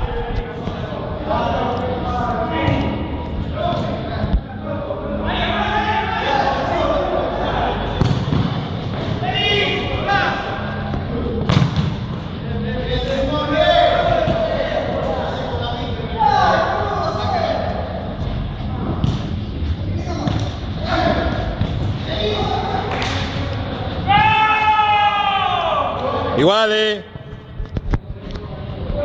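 Men shout and call out to each other across an echoing indoor pitch.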